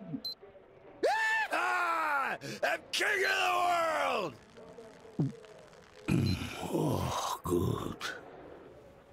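A young man talks and shouts excitedly into a microphone.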